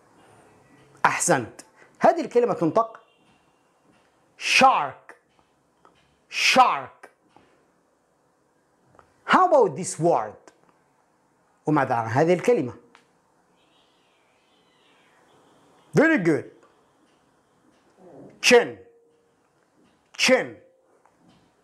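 A man speaks close to a microphone, calmly and clearly, in short phrases with pauses.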